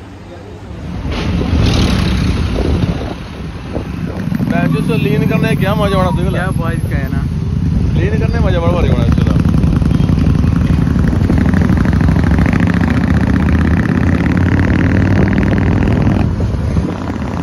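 Motorcycle engines rumble steadily on a road.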